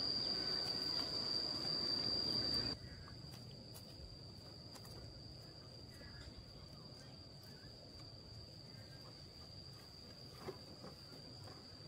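Bare feet pad softly on paving stones.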